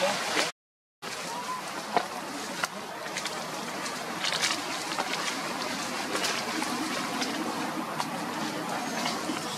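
Dry leaves rustle as a monkey shifts on the ground.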